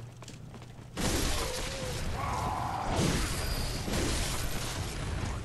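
Blades clash and slash in a fight.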